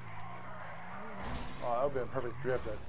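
Tyres screech as a car skids sideways.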